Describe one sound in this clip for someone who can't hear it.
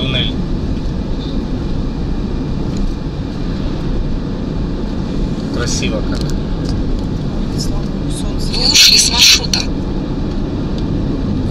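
Wind rushes loudly past an open car as it drives.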